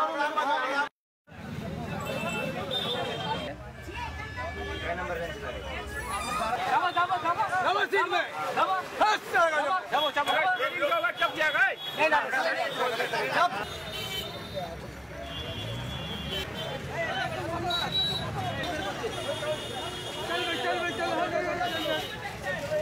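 A crowd of men talk and shout excitedly outdoors.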